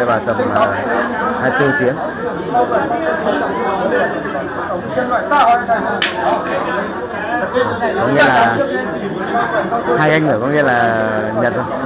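An older man chants in a low voice close by.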